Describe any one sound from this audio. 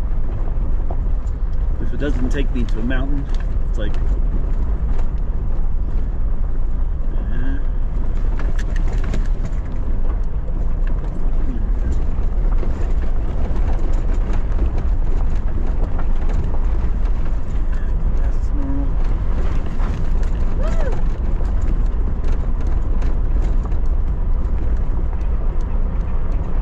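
A vehicle engine rumbles steadily.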